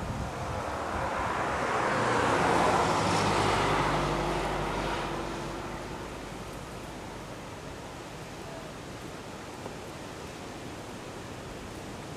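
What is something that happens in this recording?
A lizard's claws scrape softly on stone as it climbs.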